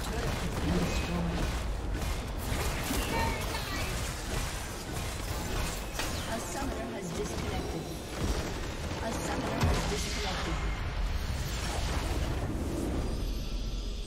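Game spell effects crackle and burst in a fast battle.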